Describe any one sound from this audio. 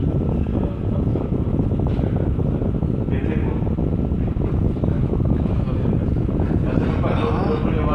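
A man speaks to an audience.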